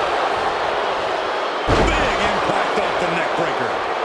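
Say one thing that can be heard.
A body slams heavily onto a wrestling mat with a deep thud.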